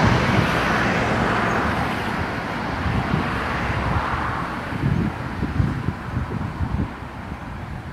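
A jet airliner's engines rumble in the distance as it lands on a runway.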